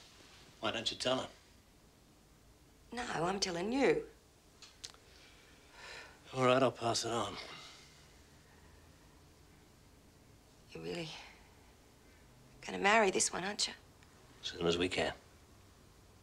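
A man speaks quietly and calmly nearby.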